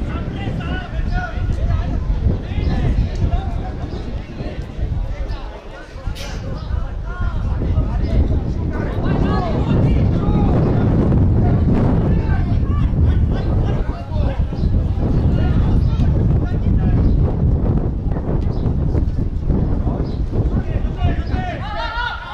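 Players shout to each other on an open outdoor pitch.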